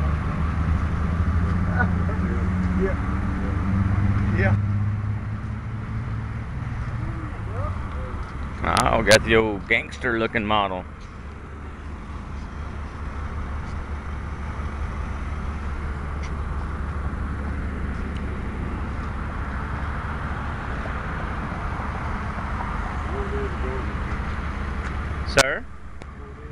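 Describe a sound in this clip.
Traffic rumbles steadily on a nearby road.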